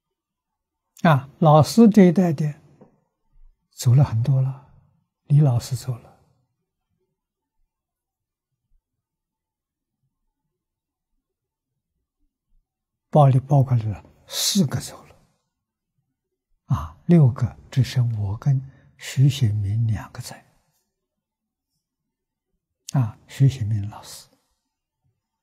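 An elderly man speaks calmly into a close microphone, with long pauses.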